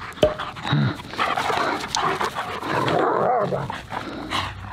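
Dogs growl and snarl as they play-fight up close.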